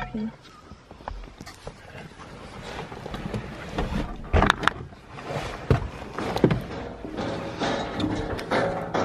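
A vehicle's body rattles and knocks over bumps.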